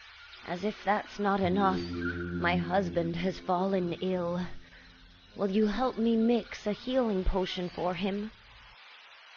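An elderly woman speaks slowly and expressively, heard close up as if through a microphone.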